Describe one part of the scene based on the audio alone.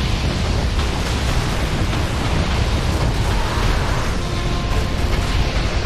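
Laser turrets fire in rapid bursts.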